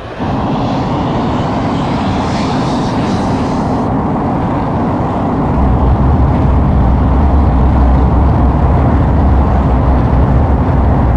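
A jet engine roars steadily and grows deeper and louder as a fighter plane speeds down the runway.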